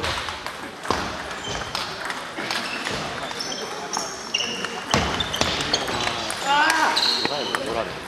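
A ping-pong ball clicks sharply against paddles and a table.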